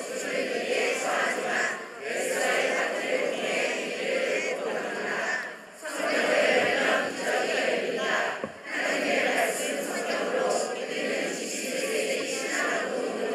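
A large choir of men and women sings together in a reverberant hall.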